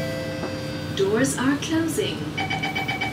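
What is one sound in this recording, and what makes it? A woman speaks briefly and softly, close by.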